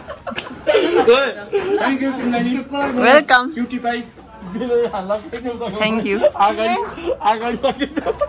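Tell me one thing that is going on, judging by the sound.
Several young people laugh and chatter outdoors.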